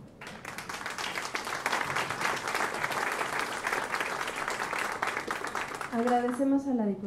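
An audience applauds loudly in an echoing room.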